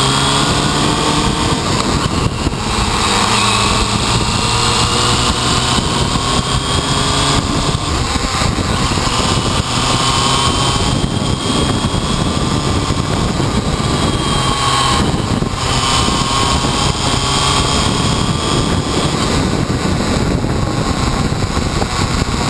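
A motorcycle engine roars steadily up close, its pitch rising and falling with speed.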